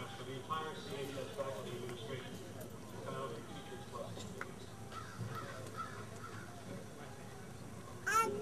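A seated outdoor crowd of men and women murmurs and chatters nearby.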